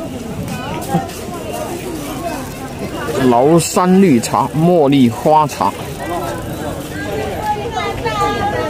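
People chatter in the background outdoors.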